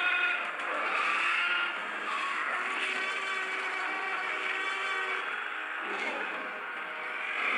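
A large dinosaur growls deeply.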